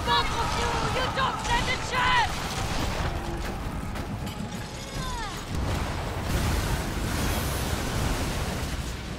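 Cannons boom heavily, one after another.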